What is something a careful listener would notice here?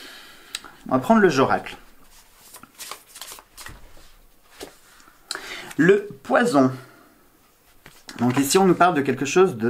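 Cards shuffle and tap in a man's hands.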